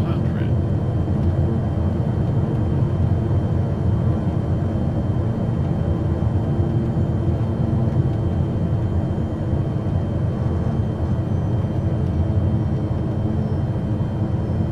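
A single-engine propeller plane's engine drones steadily, heard from inside the cockpit.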